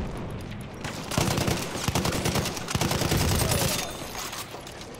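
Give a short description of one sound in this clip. Gunfire crackles across a battlefield.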